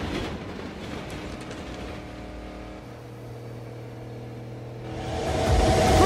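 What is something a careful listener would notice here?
A car engine revs and drones from inside the car.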